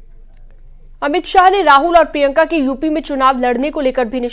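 A young woman reads out the news clearly into a microphone.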